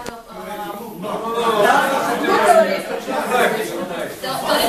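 Several men talk over one another, loud and agitated.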